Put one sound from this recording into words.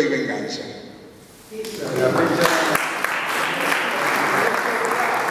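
An elderly man speaks into a microphone, heard through a loudspeaker in an echoing room.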